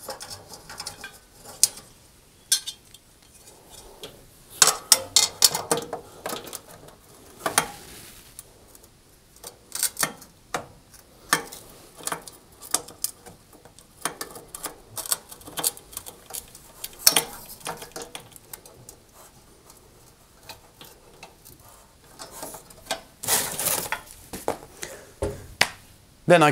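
Metal parts clatter and click as a man works inside an oven.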